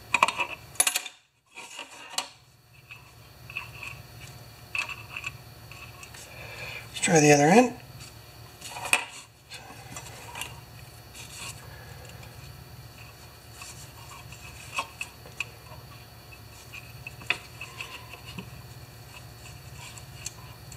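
Plastic parts click and rattle under handling hands.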